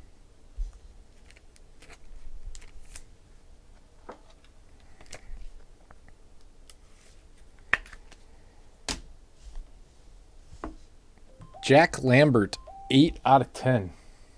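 Trading cards rustle and tap as hands handle them up close.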